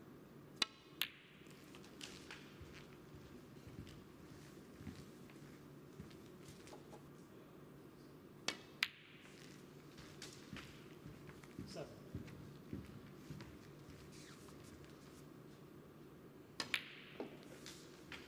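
Snooker balls click together.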